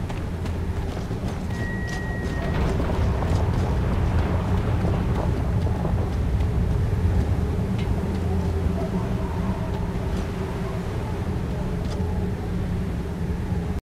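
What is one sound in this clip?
Heavy armoured boots tramp on stone.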